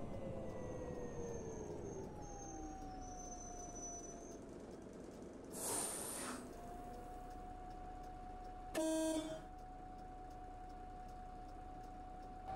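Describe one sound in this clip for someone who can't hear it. A bus engine hums steadily, rising and falling in pitch.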